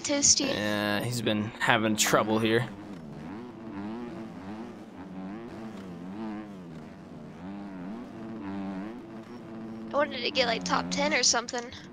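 A motorcycle engine drones and revs up and down.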